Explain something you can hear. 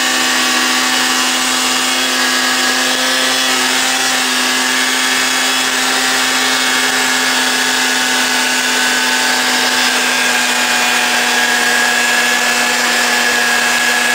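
A snowmobile engine drones loudly and steadily up close.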